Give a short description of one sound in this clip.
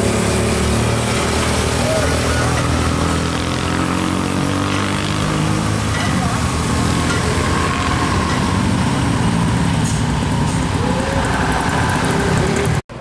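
A heavy truck engine rumbles loudly as it climbs past.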